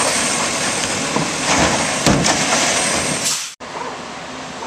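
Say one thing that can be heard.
A mechanical arm lifts and dumps a trash bin with clanks and thuds.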